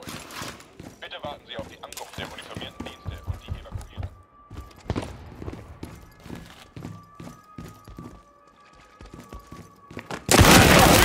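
Footsteps thud quickly on a hard floor and stairs.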